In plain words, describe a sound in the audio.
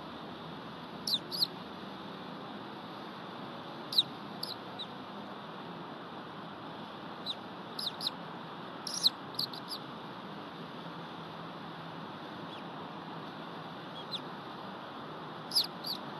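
An eagle gives short, high chirping calls now and then.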